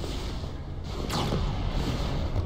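Blaster fire and explosions crackle in a distant battle.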